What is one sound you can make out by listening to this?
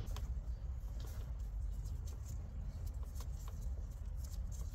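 Electrical tape crackles as it is peeled off the roll.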